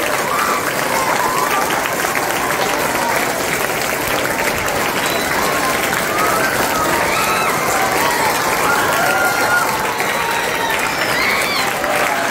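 Children cheer and call out together.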